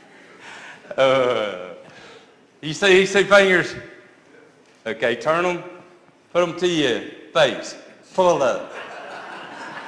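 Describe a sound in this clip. A middle-aged man speaks with animation through a microphone in a large echoing room.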